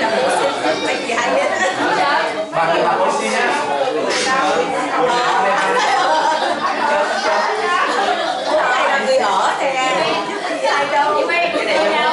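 Many children and adults chatter and call out at once in a room with some echo.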